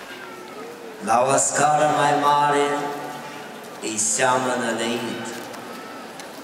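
A crowd of men and women sings a slow chant together outdoors.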